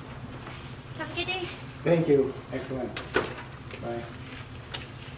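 A young woman talks nearby in a friendly voice.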